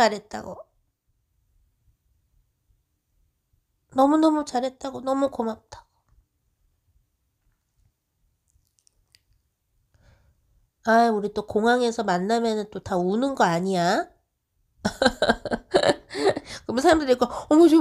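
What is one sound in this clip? A woman sings a slow song in phrases with pauses between them.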